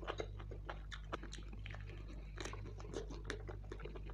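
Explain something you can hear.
Fingers squelch through thick curry sauce.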